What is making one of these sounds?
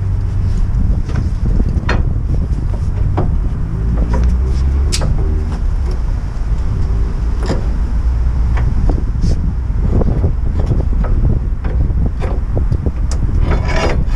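Wind rumbles loudly outdoors.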